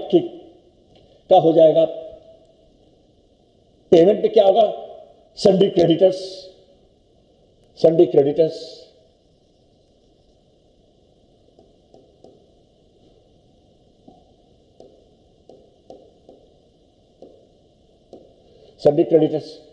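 An elderly man speaks calmly through a microphone, in short bursts.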